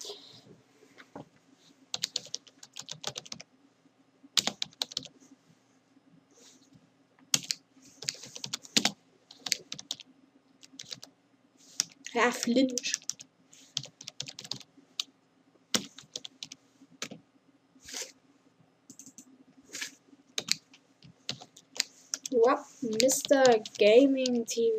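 Keys on a computer keyboard click in quick bursts.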